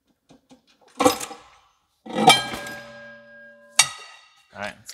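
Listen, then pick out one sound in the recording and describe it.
A heavy metal part clanks and rings out against metal.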